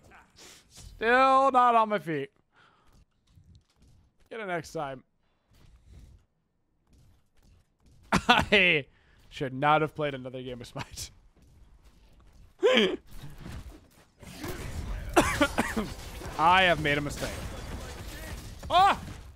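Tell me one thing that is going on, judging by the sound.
A man speaks with animation through a headset microphone.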